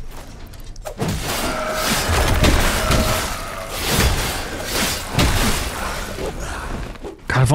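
A monster snarls and growls during a fight.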